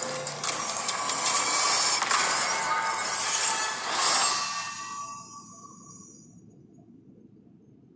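A game victory fanfare swells and fades.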